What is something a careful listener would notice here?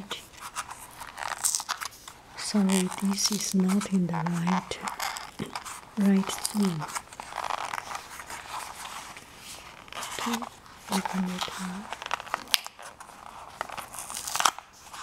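A plastic case rustles and scrapes close by.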